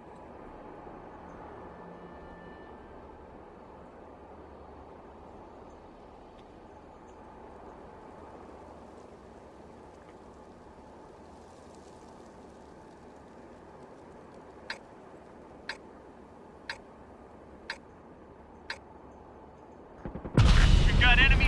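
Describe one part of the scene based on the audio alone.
A tank engine idles with a low, steady rumble.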